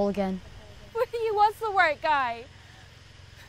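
A teenage boy speaks with a shaky voice.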